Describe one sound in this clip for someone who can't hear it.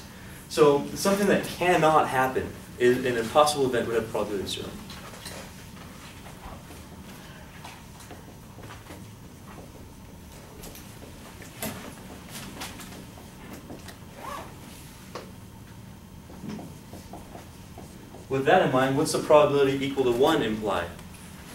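A man speaks calmly, lecturing in an echoing room.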